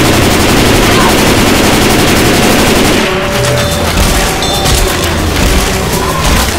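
A horde of zombies snarls and screams.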